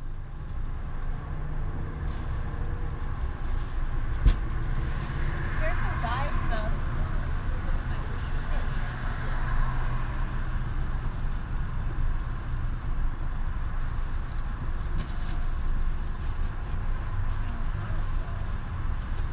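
A car engine hums with a low, steady rumble.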